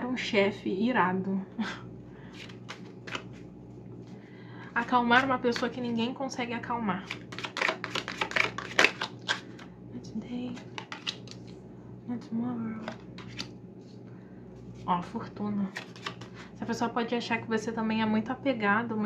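Playing cards riffle and slap together as a deck is shuffled.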